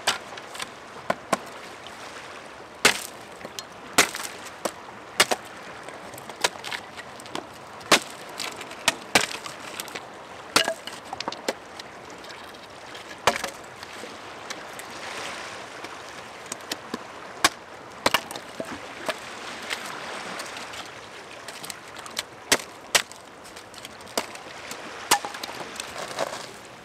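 An axe chops and knocks sharply against a wooden stick.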